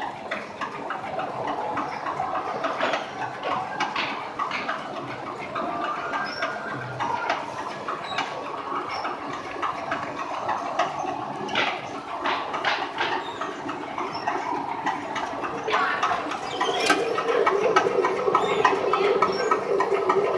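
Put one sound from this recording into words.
A fabric machine hums and rattles steadily as cloth rolls through.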